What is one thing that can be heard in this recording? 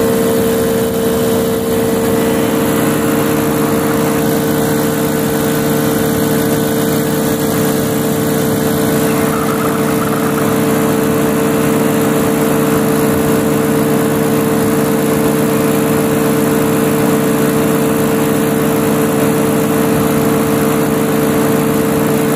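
A paramotor engine drones loudly and steadily close by.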